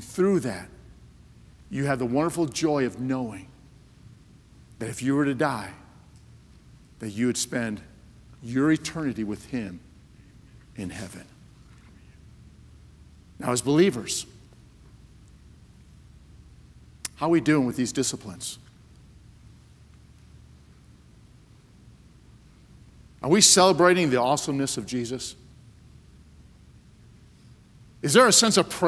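A man preaches with animation through a microphone, pausing between phrases.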